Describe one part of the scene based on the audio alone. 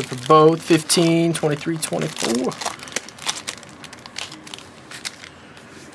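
Card packs rustle and shuffle in hands.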